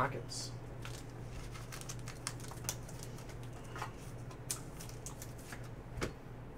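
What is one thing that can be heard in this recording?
A plastic card sleeve crinkles and taps as hands handle it up close.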